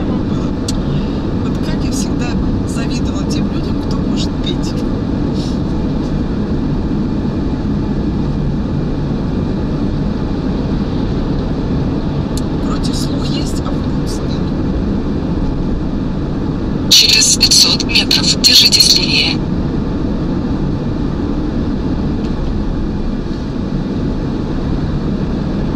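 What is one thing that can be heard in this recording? A man talks with animation inside a car.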